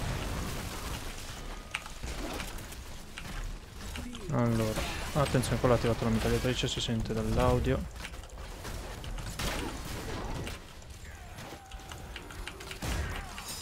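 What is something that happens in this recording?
Game fight effects clash and burst throughout.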